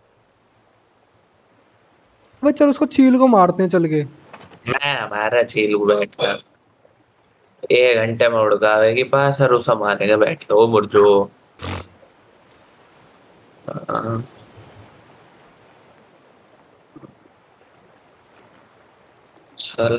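Sea waves lap softly against a small boat.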